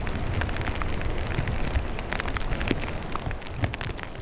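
A river flows steadily.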